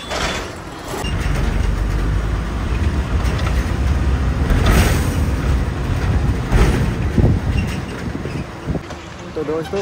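Wind rumbles and buffets against a microphone outdoors.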